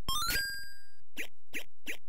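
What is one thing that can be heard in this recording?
A retro arcade game plays a quick rising chime.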